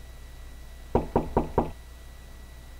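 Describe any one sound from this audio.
A fist knocks several times on a door.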